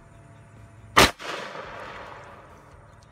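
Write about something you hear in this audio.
Plastic jugs burst and water sprays across the ground.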